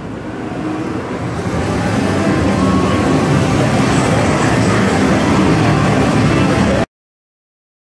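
Slot machines jingle and chime all around in a noisy hall.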